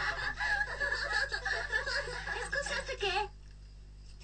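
Several young girls sing together.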